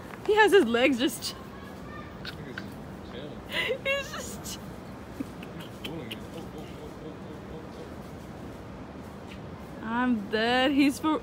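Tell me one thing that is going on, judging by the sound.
A monkey calls out in short bursts of high, wavering squeals.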